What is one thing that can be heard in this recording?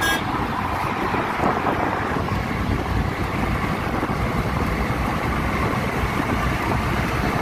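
Road and engine noise rumble inside a petrol minivan at highway speed.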